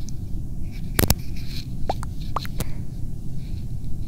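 Soft taps sound on a touch keyboard.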